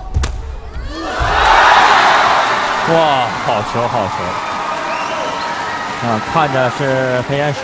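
A crowd in a large hall cheers and applauds loudly.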